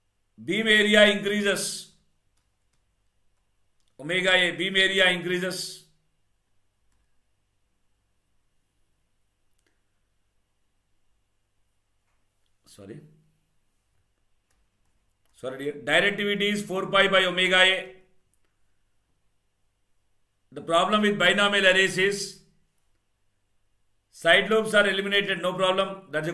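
A man speaks calmly into a close microphone, explaining in short bursts with pauses.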